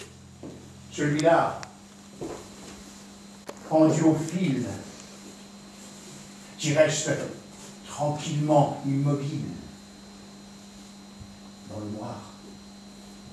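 An elderly man speaks loudly and with emotion, heard from some distance in a large room.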